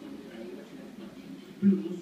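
A television plays indoors.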